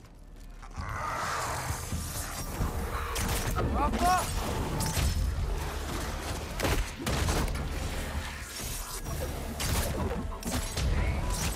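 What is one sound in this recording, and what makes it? A staff strikes a creature with heavy thuds.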